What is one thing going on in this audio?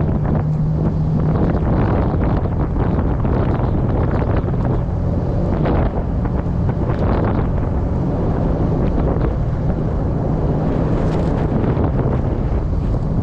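Tyres crunch and rumble over snow.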